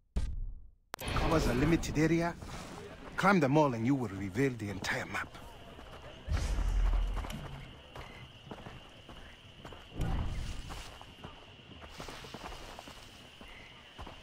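Footsteps crunch on a gravel path.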